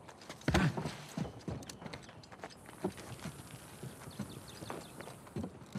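Footsteps thud and creak on wooden boards.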